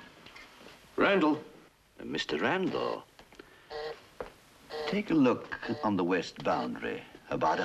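A middle-aged man speaks firmly into a telephone, close by.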